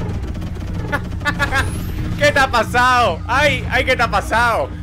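A man laughs loudly and talks excitedly close to a microphone.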